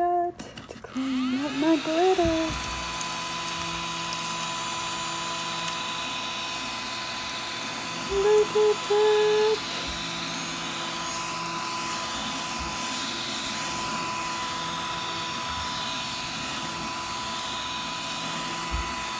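A small desk vacuum whirs as it sucks up glitter.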